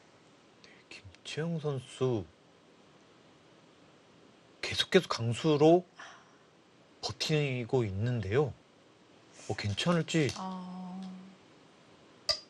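A young woman talks calmly into a microphone.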